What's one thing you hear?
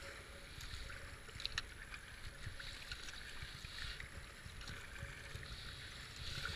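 A paddle splashes into the water.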